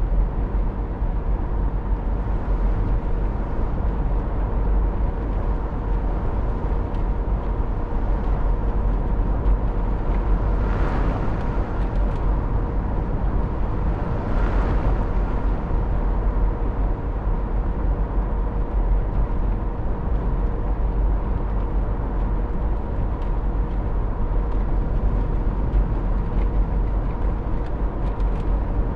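Tyres roll on a road with a steady rush.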